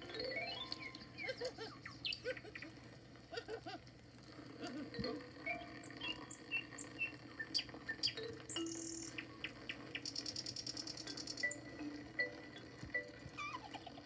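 Cheerful children's music plays through a small loudspeaker.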